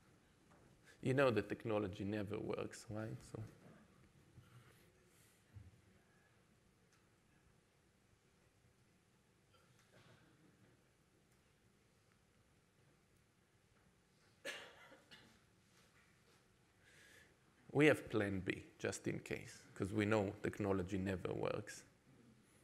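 A man speaks to an audience in a large room, heard from a distance.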